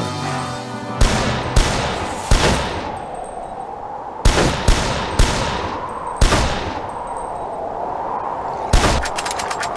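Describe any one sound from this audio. Loud gunshots boom one after another, each with a short ringing tail.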